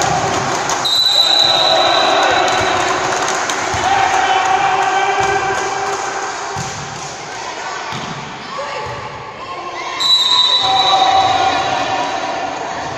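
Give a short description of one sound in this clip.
Girls call out and shout during play in an echoing gym.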